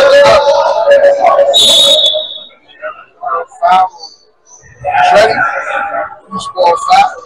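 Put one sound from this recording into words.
Several men argue loudly in an echoing hall.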